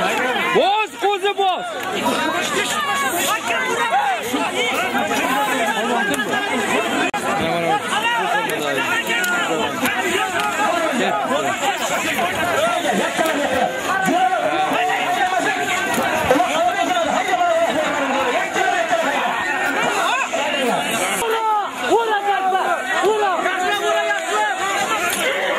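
A large crowd of men shouts and calls out close by.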